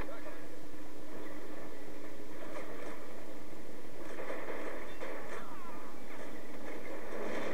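A tank engine rumbles as the tank rolls along.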